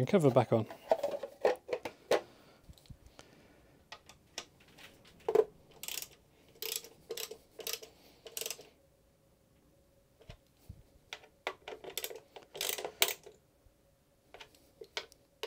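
Small plastic and metal parts click and rattle.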